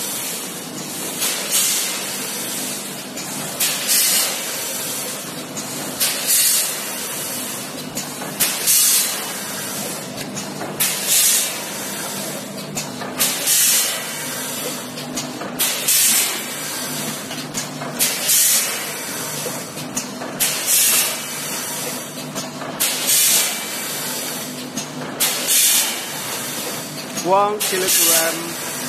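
A packing machine hums and clatters steadily.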